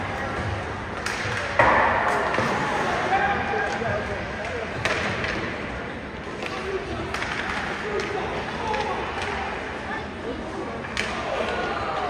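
Hockey sticks clack sharply against a puck in an echoing rink.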